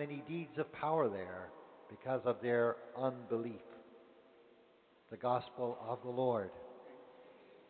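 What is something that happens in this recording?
An elderly man chants through a microphone in a large echoing hall.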